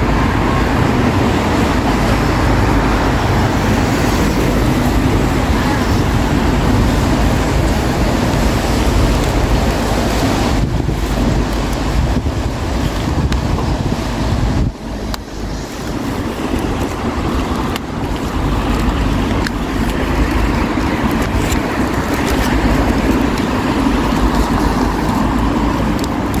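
Car tyres hiss past on a wet road.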